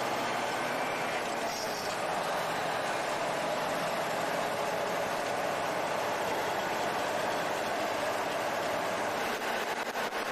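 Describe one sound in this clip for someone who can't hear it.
Tyres rumble over a snowy road.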